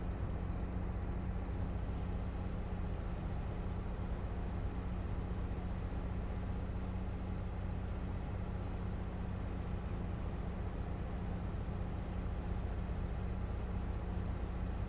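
A combine harvester engine drones steadily from inside the cab.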